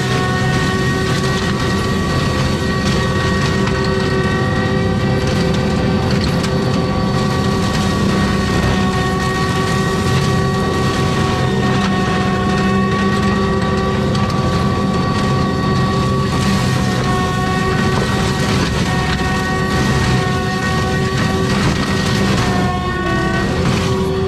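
A mulcher grinds and shreds brush and small trees.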